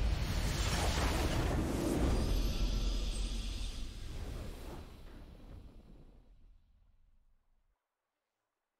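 A triumphant game fanfare plays loudly and slowly fades away.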